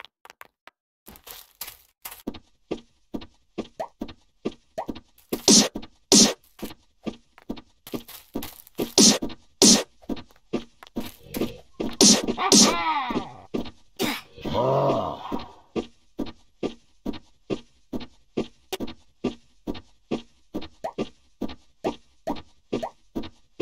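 Footsteps thud quickly and evenly.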